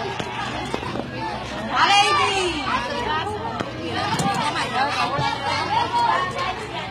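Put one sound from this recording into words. Children chatter and talk excitedly nearby.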